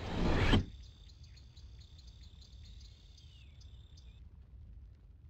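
A magical spell rings with a high, glittering shimmer.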